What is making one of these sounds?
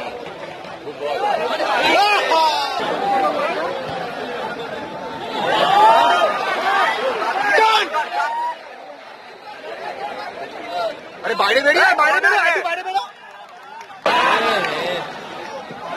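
A large stadium crowd roars and cheers loudly in bursts.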